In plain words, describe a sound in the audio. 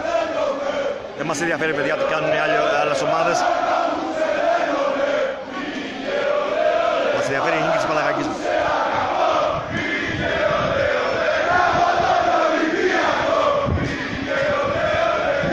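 A large crowd of fans chants and sings loudly in an open stadium.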